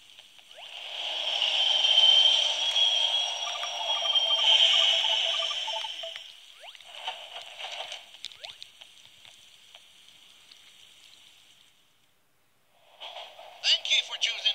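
Bright electronic game music and chimes play from a small handheld speaker.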